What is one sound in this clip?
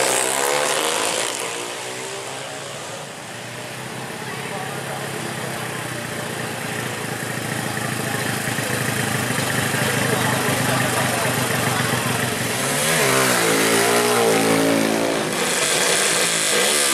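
A crowd cheers and chatters outdoors.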